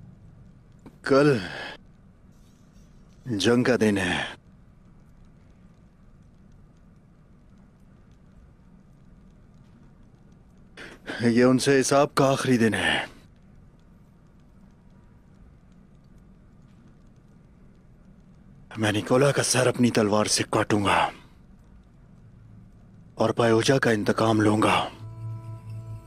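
A middle-aged man speaks in a low, firm voice, close by.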